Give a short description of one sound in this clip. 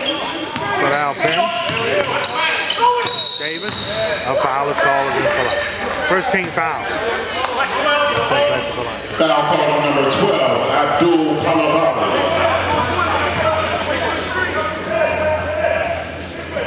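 Spectators talk and shout in a large echoing hall.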